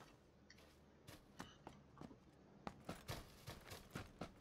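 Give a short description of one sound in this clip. Footsteps run across dry grass.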